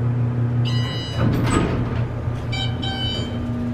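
Elevator doors slide open with a rumble.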